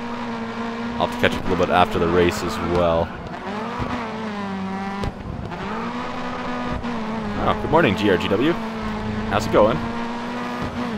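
Tyres squeal sharply through corners.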